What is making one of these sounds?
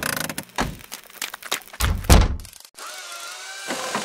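A small car drives along a bumpy dirt track.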